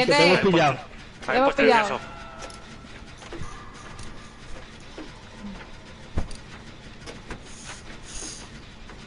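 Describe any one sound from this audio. A machine clicks and rattles as it is being repaired.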